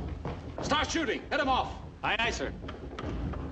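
A man speaks urgently, heard through an old, thin recording.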